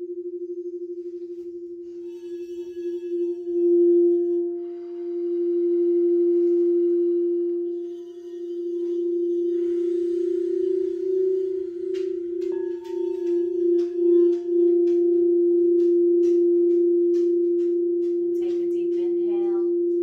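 Crystal singing bowls hum with a steady, ringing tone.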